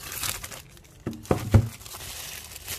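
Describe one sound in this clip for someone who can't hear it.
A cardboard box is set down on a table with a soft thud.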